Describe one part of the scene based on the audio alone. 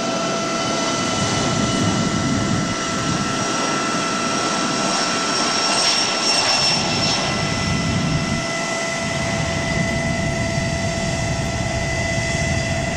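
A jet airliner's engines whine and roar loudly as it speeds down the runway.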